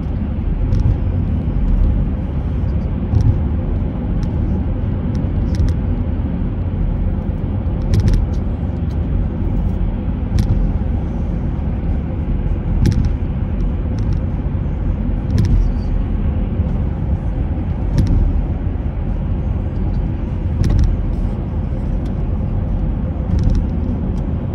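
A car's engine hums steadily as tyres roll over a highway, heard from inside the car.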